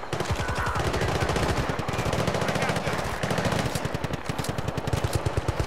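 A machine gun fires rapid, steady bursts close by.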